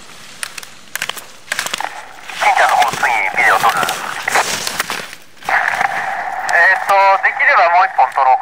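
A slalom pole clacks as a skier strikes it.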